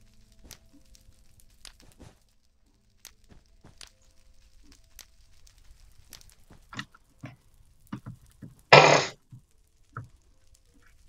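Fire crackles and pops in short bursts.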